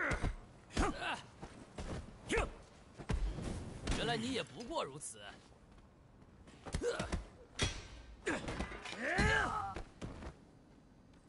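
Punches land with heavy thuds in a fight.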